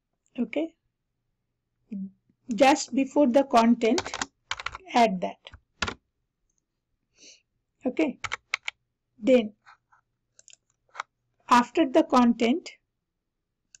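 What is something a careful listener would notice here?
A woman speaks calmly and close to a headset microphone, with pauses.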